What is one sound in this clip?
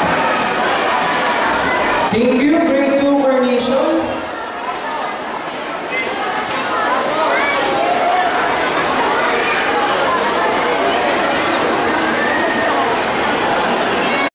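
Young children chatter and call out nearby, outdoors.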